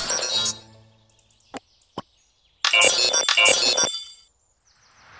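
A game's victory jingle plays brightly.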